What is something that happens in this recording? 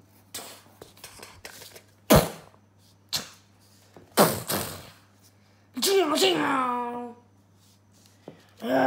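Paper rustles and slides on a table as cut-out sheets are moved.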